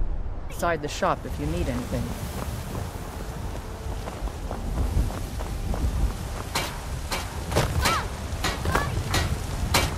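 Footsteps crunch on a stone path.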